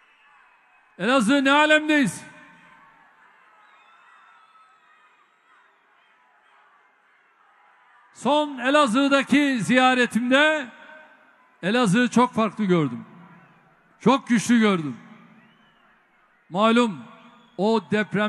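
A man speaks forcefully through loudspeakers in a large echoing hall.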